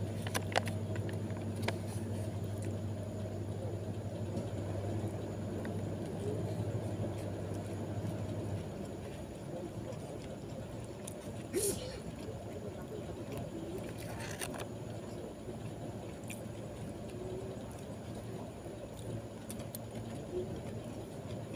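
A spoon scrapes and clinks against food.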